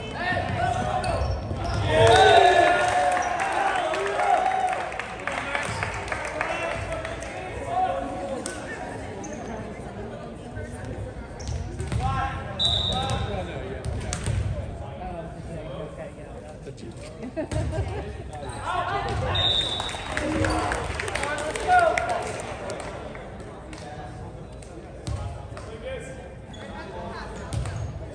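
A volleyball is struck by hand.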